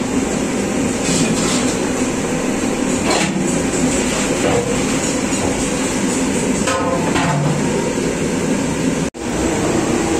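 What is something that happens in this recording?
A hand squelches and squishes through thick wet paste in a metal pot.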